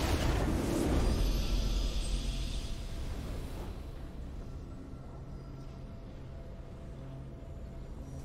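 A triumphant video game victory fanfare plays and slowly fades.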